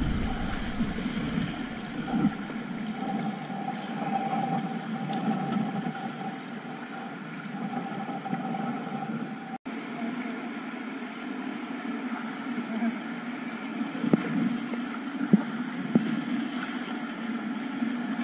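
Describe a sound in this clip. A kayak paddle splashes into the water in quick strokes.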